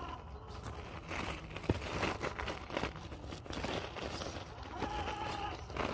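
Loose stones crunch and clatter under tyres.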